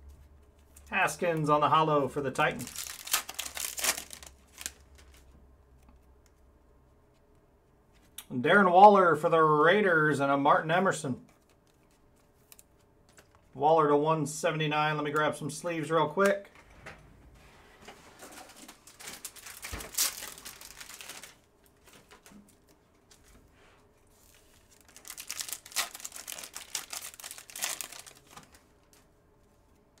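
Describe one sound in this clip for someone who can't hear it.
Trading cards slide and flick against each other in someone's hands.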